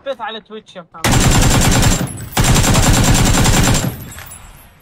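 Automatic gunfire rattles loudly in rapid bursts.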